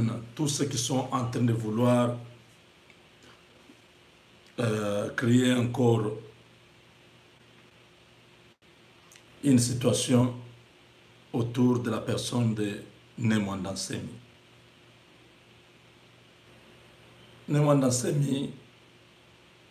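A man speaks calmly and close to the microphone, in short phrases with pauses.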